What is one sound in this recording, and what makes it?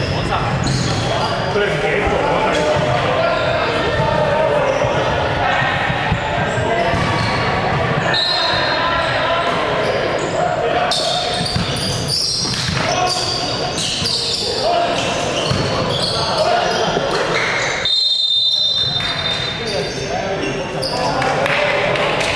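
Sneakers squeak sharply on a court in a large echoing hall.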